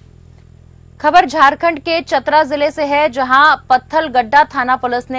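A young woman speaks calmly and clearly into a microphone.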